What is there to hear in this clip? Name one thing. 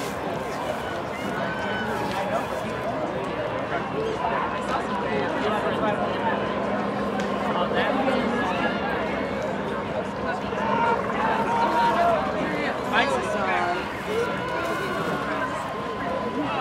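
A young woman shouts calls to rowers from a distance.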